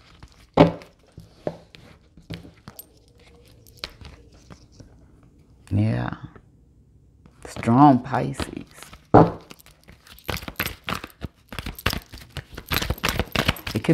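Cards are shuffled by hand, with quick papery flicks.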